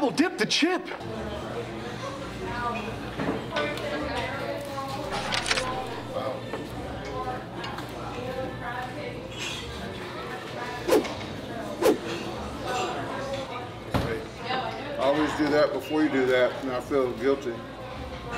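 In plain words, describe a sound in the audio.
Two men talk casually at a table.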